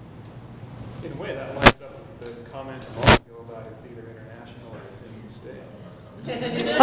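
A woman speaks calmly to an audience in a large room.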